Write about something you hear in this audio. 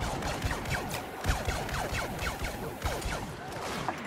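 A spacecraft engine roars close by.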